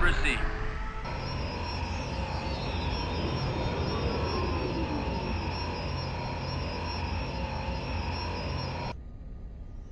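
A spaceship's engines hum steadily.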